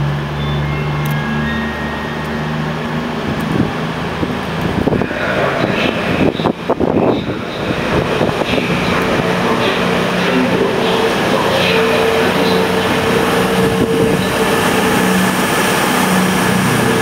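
A diesel train engine drones and grows louder as the train approaches.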